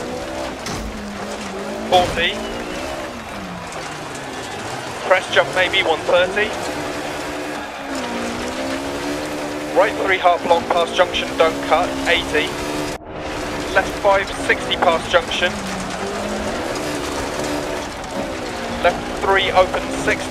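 A rally car engine roars, revving up and dropping between gear changes.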